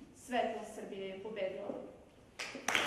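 A young woman speaks calmly.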